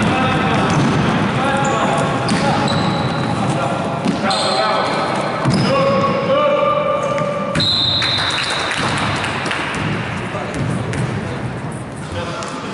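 Young men call out and shout to each other across an echoing hall.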